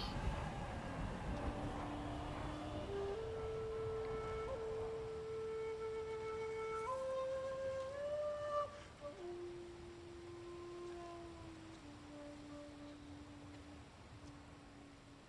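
A bamboo flute plays a slow, gentle melody of long held notes.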